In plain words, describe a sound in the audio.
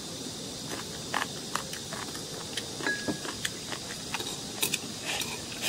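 Chopsticks click against a bowl.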